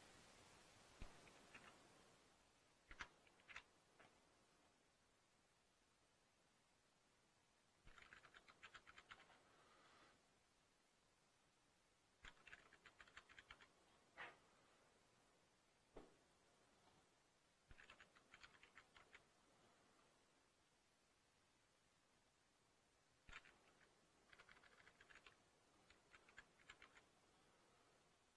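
Keys clatter on a computer keyboard in short bursts of typing.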